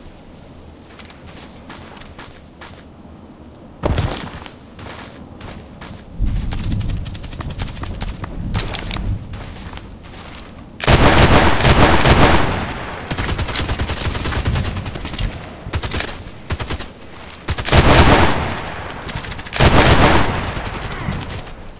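Footsteps crunch through grass.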